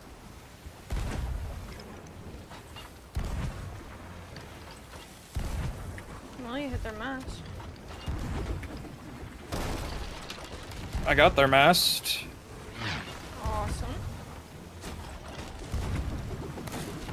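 Cannons fire with deep booms.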